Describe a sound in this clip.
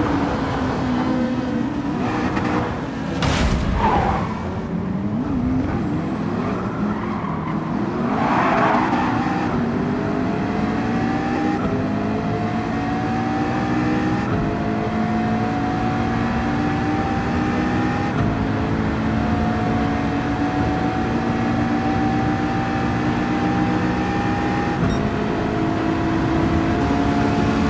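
A race car engine roars and climbs in pitch, dropping briefly with each gear change.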